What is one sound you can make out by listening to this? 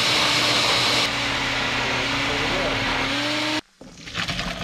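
A blender whirs loudly, its motor pitch rising.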